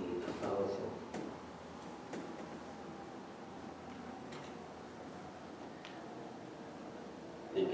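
A man speaks slowly and calmly.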